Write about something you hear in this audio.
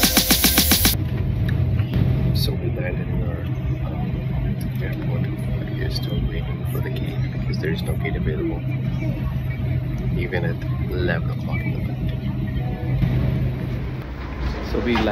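An aircraft cabin hums with a steady, low engine drone.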